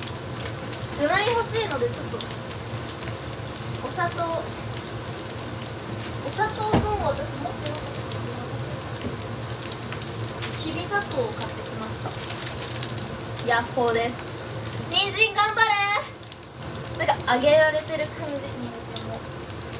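A young woman speaks in short bursts close to the microphone.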